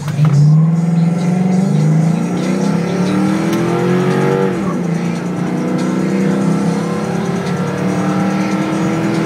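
A car engine drones steadily and rises in pitch as the car speeds up, then drops when the gear changes.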